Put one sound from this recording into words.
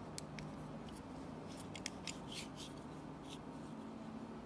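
Metal calipers click and tap against a hard plastic sheet.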